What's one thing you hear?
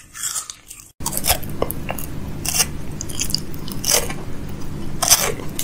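A man bites into a chocolate bar with a crisp snap.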